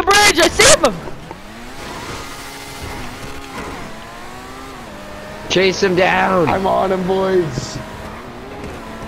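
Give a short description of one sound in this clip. A sports car engine revs and whines as the car drives.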